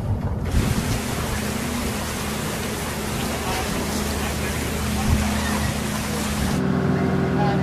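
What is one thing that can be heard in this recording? A boat engine drones.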